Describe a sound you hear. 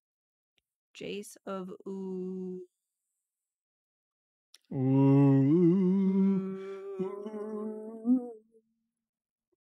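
A man speaks into a close microphone in drawn-out, sing-song tones.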